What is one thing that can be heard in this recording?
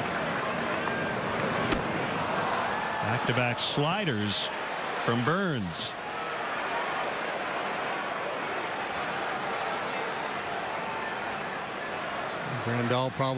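A crowd murmurs steadily outdoors in a large stadium.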